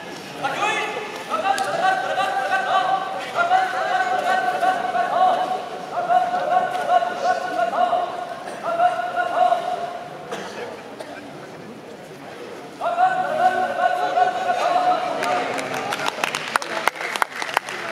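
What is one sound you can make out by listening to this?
A man's voice calls out in long, drawn-out, wavering cries.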